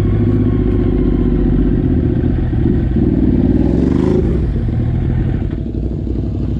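A motorcycle engine roars loudly close by, then fades.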